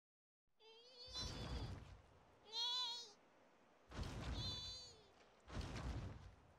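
A large creature gives high, warbling cries.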